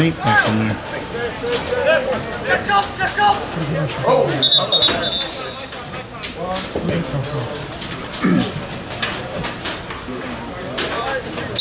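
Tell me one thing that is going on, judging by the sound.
Lacrosse sticks clack together as players check each other.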